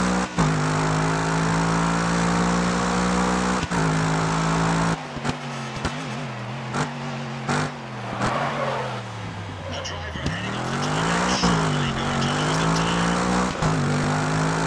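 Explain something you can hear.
Gear changes cut the engine roar with sharp breaks.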